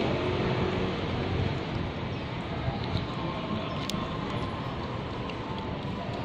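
A plastic food pouch crinkles.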